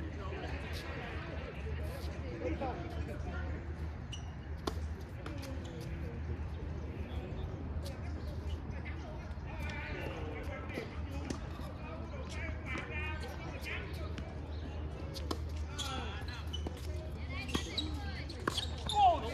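Paddles strike a ball with sharp, hollow pops outdoors.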